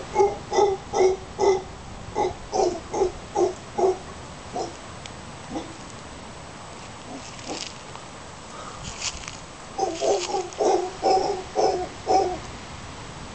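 Monkeys call from the treetops in short, repeated barks.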